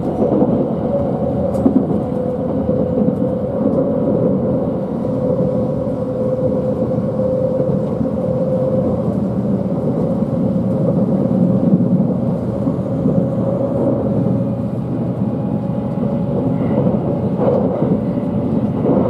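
A train's motor hums with a steady drone.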